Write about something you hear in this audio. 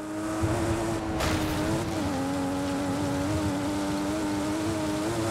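A sports car engine roars steadily at high revs.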